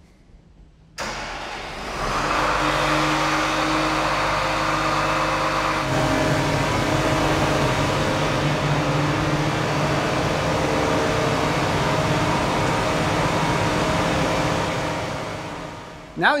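A large machine's engine starts up and runs with a steady rumble, echoing in a large hall.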